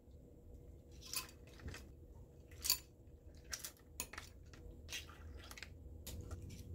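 A ladle clinks against a pot and a bowl.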